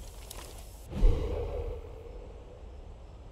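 A sheet of paper rustles.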